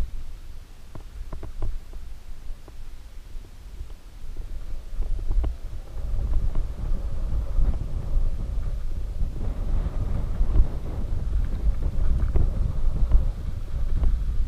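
A bicycle frame clicks and clatters over bumps.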